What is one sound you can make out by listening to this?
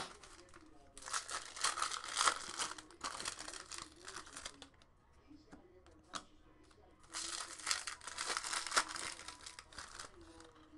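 Foil wrappers crinkle and tear as they are opened.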